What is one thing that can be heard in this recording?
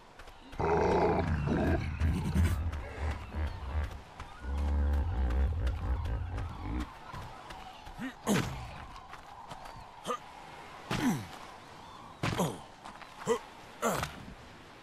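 Footsteps thud quickly over sand and rock.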